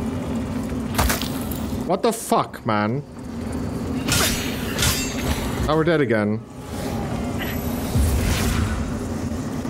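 Sword blows land with sharp, heavy hits.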